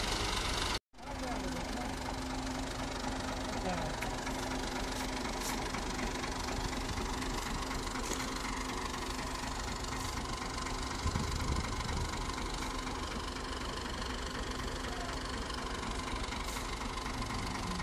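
A tractor engine idles steadily close by.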